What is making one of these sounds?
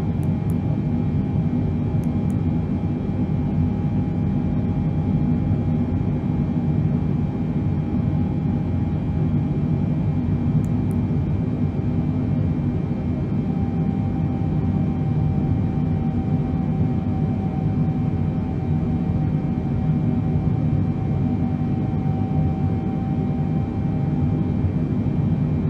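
Jet engines drone steadily and low inside an airliner's cockpit.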